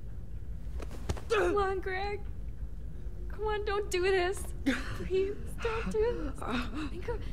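A young woman pleads in a shaky, upset voice.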